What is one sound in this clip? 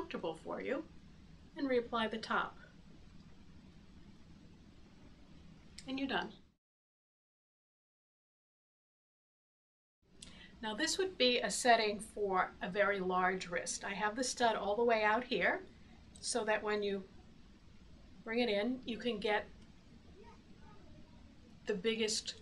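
A woman talks calmly and close by, as if explaining.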